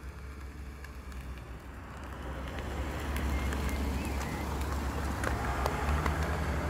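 Plastic buckles on a roller skate click and rattle close by.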